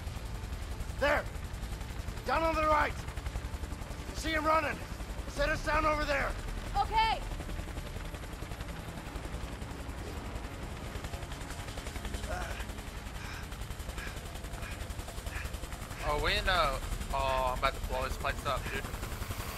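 A young man speaks in short bursts into a microphone.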